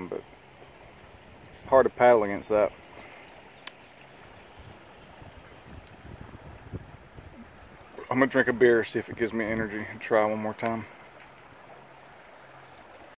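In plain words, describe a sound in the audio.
A river rushes and gurgles steadily nearby.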